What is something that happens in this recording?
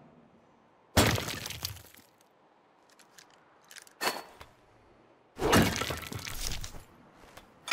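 A gun fires loud shots that echo off stone walls.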